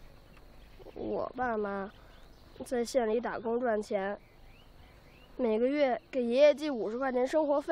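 A boy speaks softly and sadly nearby.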